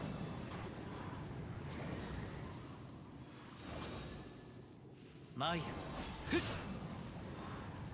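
Flames burst with a roar.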